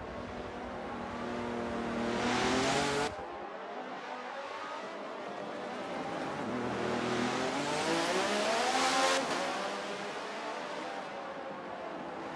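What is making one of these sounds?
Racing car engines whine at high pitch, rising and falling as the cars speed past.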